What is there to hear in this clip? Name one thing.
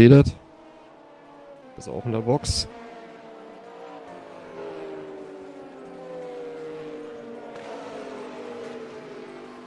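Racing car engines whine steadily at high revs.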